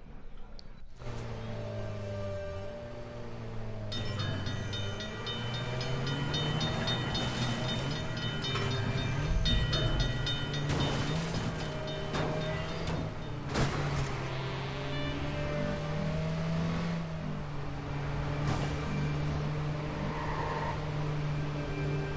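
A car engine hums steadily as a car drives along a road.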